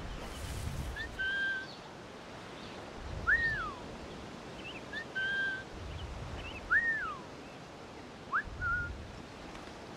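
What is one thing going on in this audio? A small wild cat gives short, high cries again and again.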